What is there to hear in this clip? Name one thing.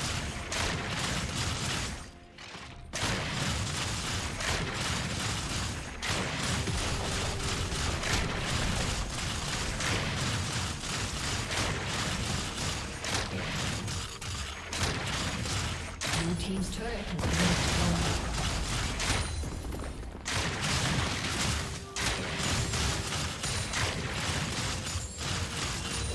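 Fantasy battle sound effects clash, zap and crackle rapidly.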